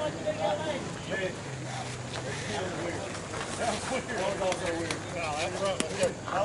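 Several men talk and call out nearby outdoors.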